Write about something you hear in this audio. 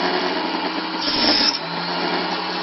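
A saw blade cuts through a strip of wood.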